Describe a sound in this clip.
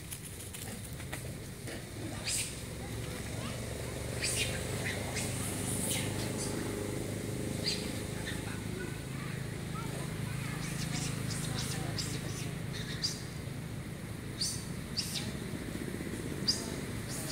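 Dry leaves rustle as a monkey moves on the ground.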